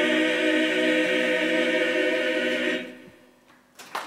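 A men's choir sings a sustained chord in a large room.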